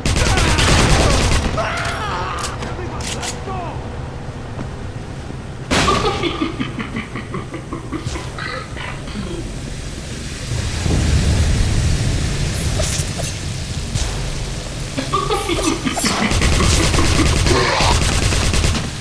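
Rapid gunfire bursts out close by.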